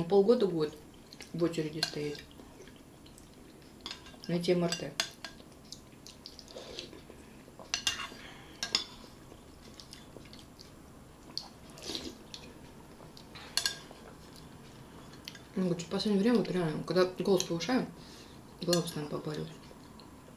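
Spoons clink against bowls.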